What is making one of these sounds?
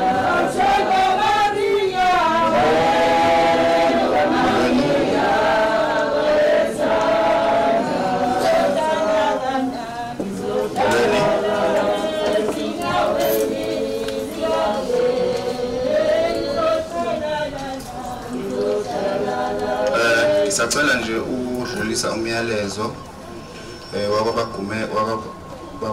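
A crowd of men and women sings together nearby, slow and sustained.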